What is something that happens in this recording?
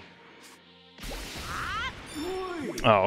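A powerful energy blast bursts with a loud whoosh.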